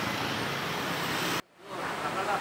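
Motorbikes ride past on a street.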